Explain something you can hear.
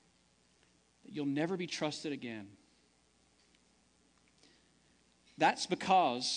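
A man preaches through a microphone in a large hall, speaking with pauses.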